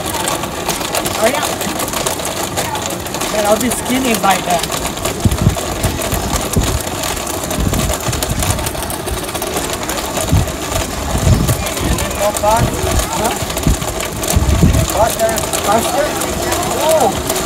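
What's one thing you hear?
A blender whirs steadily.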